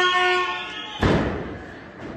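A wrestler slams onto the ring mat with a loud thud.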